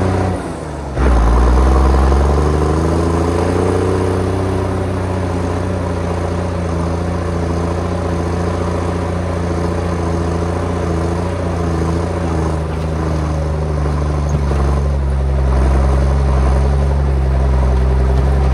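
A heavy diesel engine rumbles steadily inside an enclosed cab, revving up at the start.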